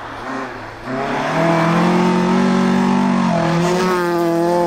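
A rally car engine revs hard as the car approaches and races past.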